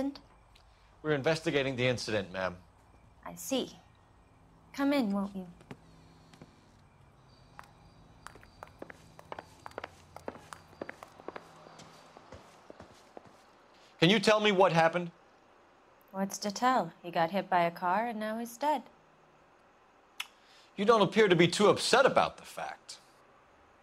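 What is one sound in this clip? A man speaks calmly and politely.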